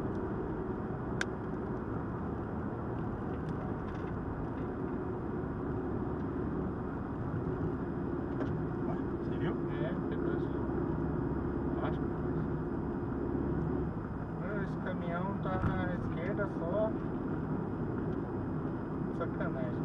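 A car's engine hums and its tyres roar steadily on a motorway.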